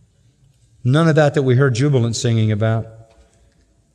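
An elderly man speaks firmly into a microphone in a reverberant hall.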